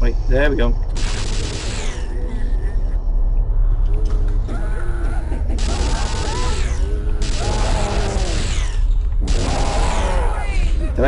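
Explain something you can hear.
An electric gun crackles and buzzes in short bursts.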